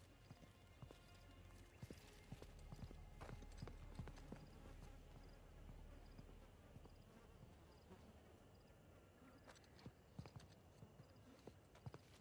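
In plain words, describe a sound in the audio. Footsteps scuff over stone and debris.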